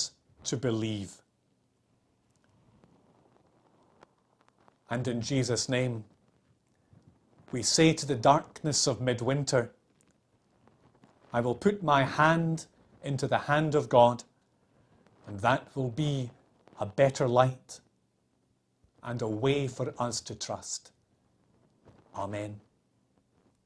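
A middle-aged man speaks calmly and expressively, close to the microphone, with pauses between phrases.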